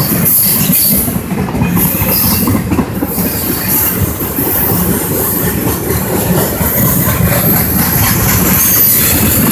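A freight train rumbles and rattles steadily past on the tracks nearby.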